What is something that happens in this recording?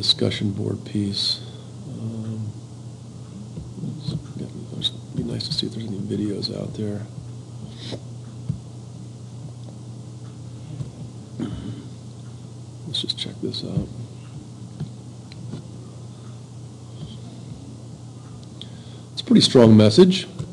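A man talks calmly into a nearby microphone.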